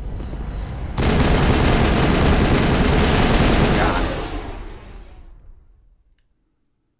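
A blast of energy bursts with a loud, rushing roar that slowly fades.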